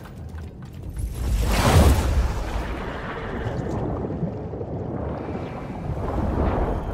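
A deep rushing whoosh swells loudly and then fades.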